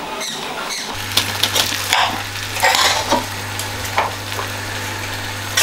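A spoon scrapes and taps inside a metal pot.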